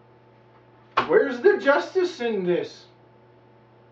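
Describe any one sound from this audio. A man speaks loudly and briefly, close by.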